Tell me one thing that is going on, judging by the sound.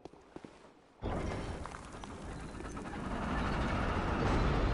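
A heavy door grinds open with a loud rumble.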